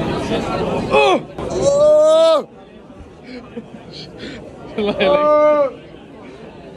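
A young man sings loudly up close.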